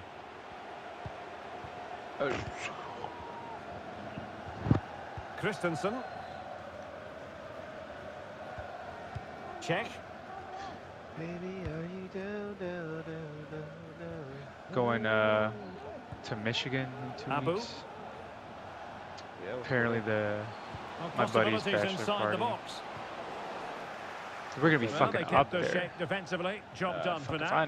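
A football is kicked with dull thumps.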